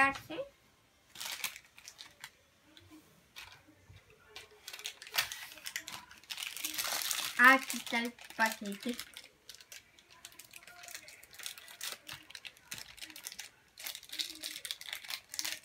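Paper and plastic wrappers rustle and crinkle.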